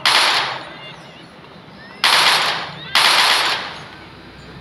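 Gunshots ring out loudly.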